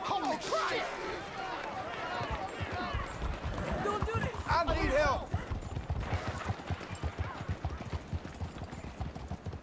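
A horse's hooves clop steadily on a paved street.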